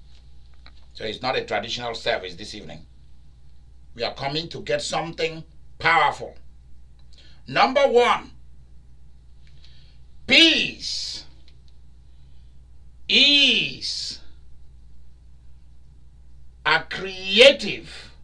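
A man speaks with animation, in short bursts with pauses.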